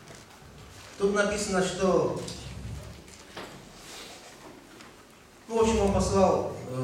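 A man speaks with feeling into a microphone in a reverberant hall.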